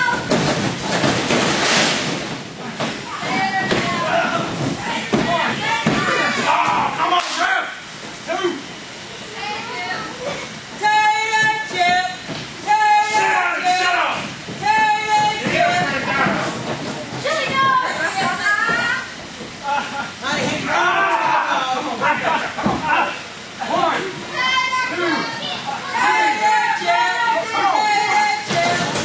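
Spectators shout and cheer in an echoing hall.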